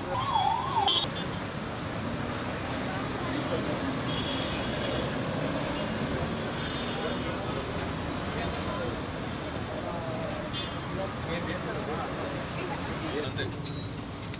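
Traffic hums along a busy road outdoors.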